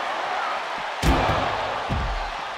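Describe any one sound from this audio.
A heavy body slams onto a hard floor with a loud thud.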